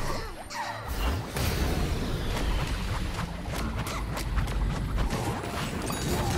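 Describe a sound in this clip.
Magic blasts crackle and burst in a video game.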